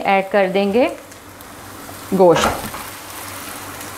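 Raw meat drops into a sizzling pan.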